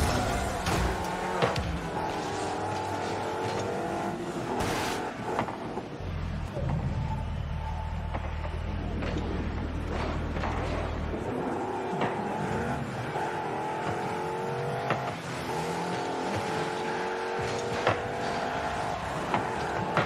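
A car engine hums and whines steadily, rising and falling in pitch as the car speeds along.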